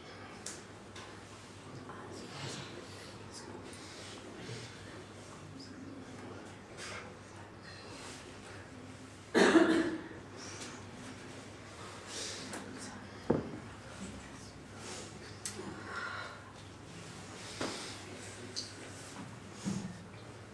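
A young woman speaks softly and haltingly, close by.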